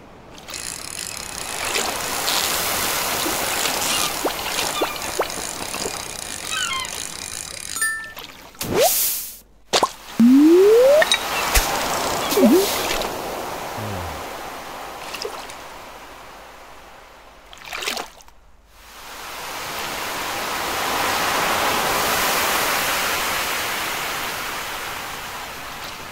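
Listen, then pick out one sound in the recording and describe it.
Water laps steadily.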